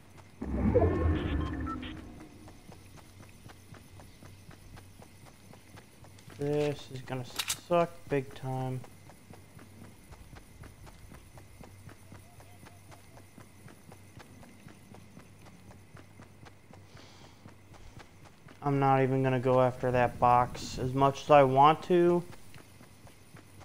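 Footsteps patter quickly and steadily over grass.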